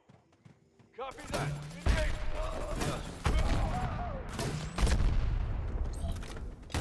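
A rifle fires in rapid bursts.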